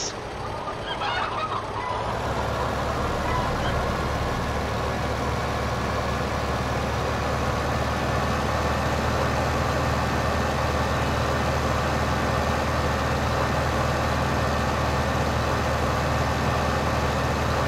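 A tractor engine rumbles steadily as it drives along.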